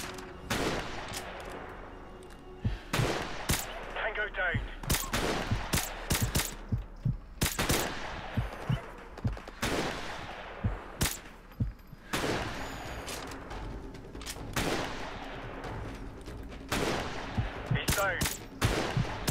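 A rifle fires loud, single shots that boom and echo away.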